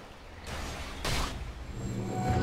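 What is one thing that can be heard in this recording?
A fiery blast bursts loudly.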